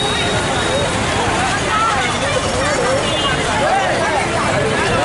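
A large crowd of women chatters and calls out loudly outdoors.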